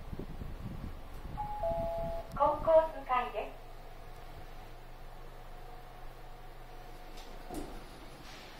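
An elevator hums steadily and low.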